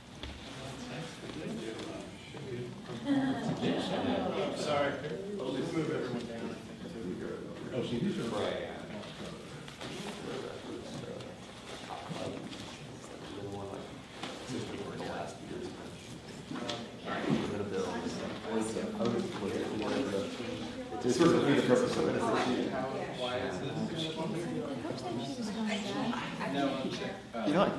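Several men and women chat nearby in a large room with a light echo.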